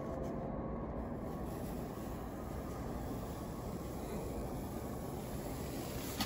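A gloved hand brushes softly against a frosty surface.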